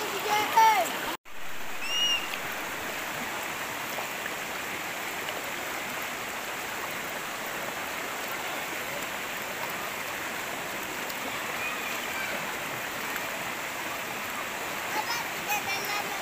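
Water rushes and splashes over rocks close by.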